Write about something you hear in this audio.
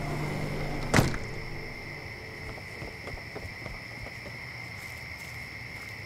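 Footsteps thud down wooden steps.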